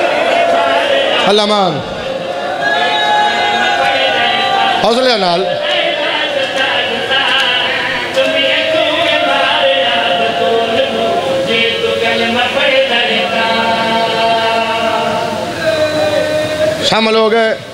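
A young man chants loudly and emotionally through a microphone and loudspeakers.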